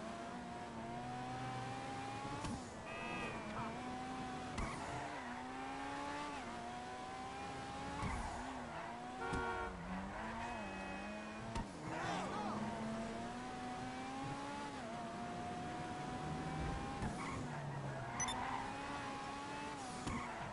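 A sports car engine roars steadily, rising and falling in pitch as the car speeds up and slows down.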